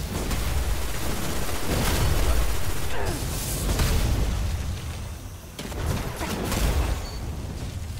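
A burst of flame roars from a swinging hammer.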